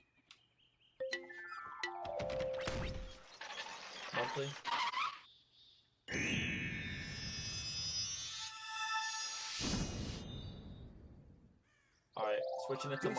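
Game music plays with bright, rising chimes.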